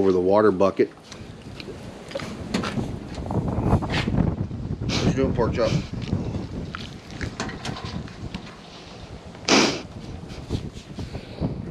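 A pig snuffles and sniffs close by.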